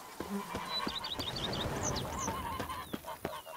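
Geese honk nearby.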